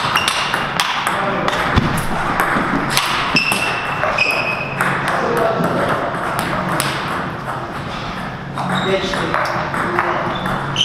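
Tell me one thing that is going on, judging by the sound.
A table tennis ball clicks sharply against paddles and the table in an echoing hall.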